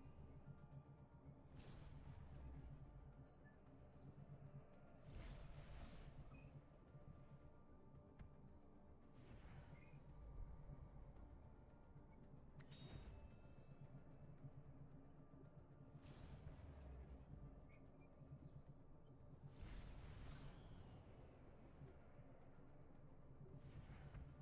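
Low, rumbling game music plays steadily.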